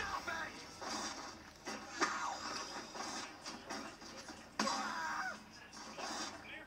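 Video game battle sounds and effects play through a television speaker.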